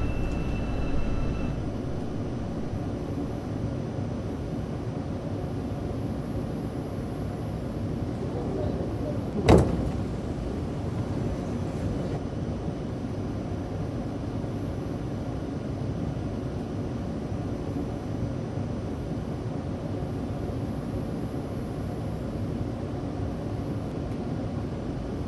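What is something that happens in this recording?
A low, steady hum fills a train car.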